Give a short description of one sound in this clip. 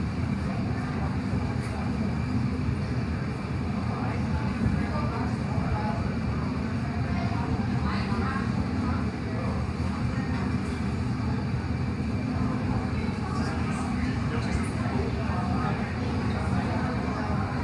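A furnace roars steadily and deeply.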